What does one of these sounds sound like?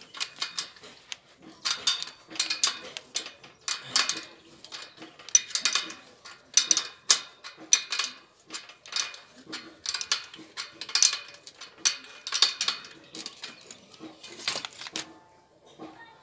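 Metal parts clink and scrape as a bicycle wheel is worked on by hand.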